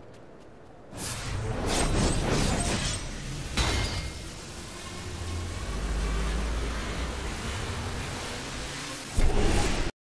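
Sharp magic blasts and weapon hits crackle in a fight.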